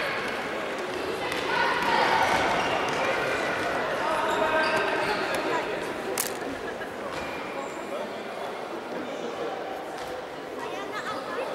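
Sneakers squeak and thud on a wooden floor.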